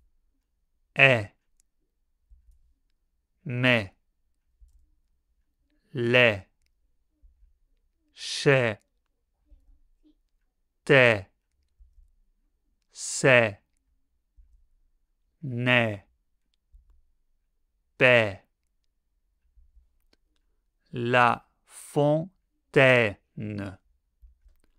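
A man pronounces short words one at a time into a close microphone, clearly and slowly, with pauses between them.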